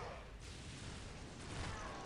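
An explosion bursts with a dull boom.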